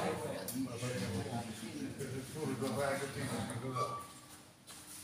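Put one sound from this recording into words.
An elderly man talks calmly nearby in a large echoing hall.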